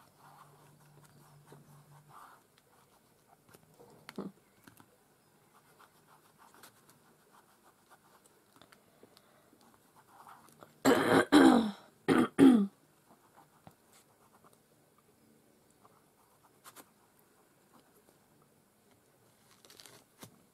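Hands rub and pat a sheet of paper on a table.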